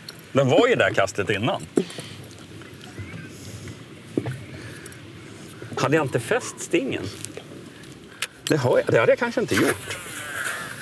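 A man talks with animation close by, through a clip-on microphone.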